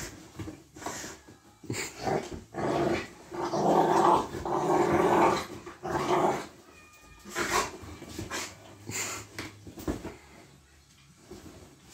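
A large dog snuffles and rustles a blanket on a leather sofa.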